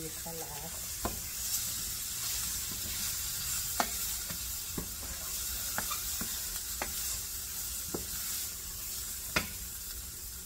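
A spatula scrapes and knocks against a metal pan.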